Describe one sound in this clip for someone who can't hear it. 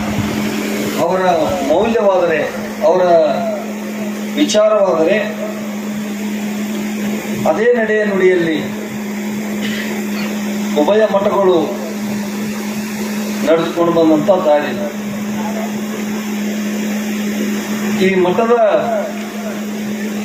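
A man speaks with animation into a microphone, heard through loudspeakers, in short bursts with pauses.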